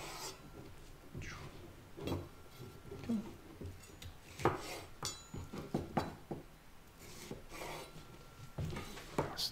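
A knife chops through vegetables on a cutting board with sharp knocks.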